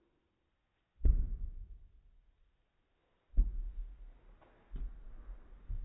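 A tennis ball bounces on the floor with dull thuds.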